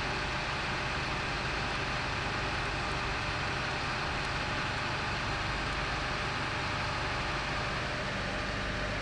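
A hydraulic rescue tool's pump hums steadily.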